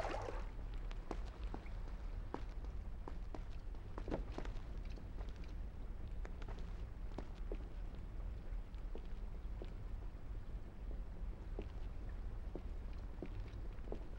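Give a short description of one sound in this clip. Footsteps patter quickly across stone.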